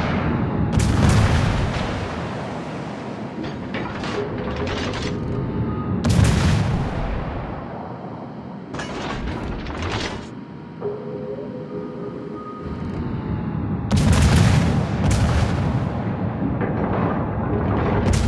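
Shells explode with heavy booms.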